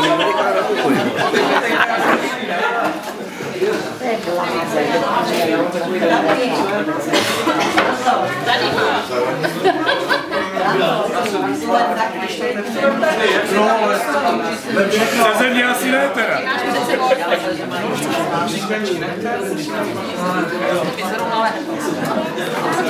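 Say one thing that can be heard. A crowd of men and women chatter and talk over each other nearby in a large room.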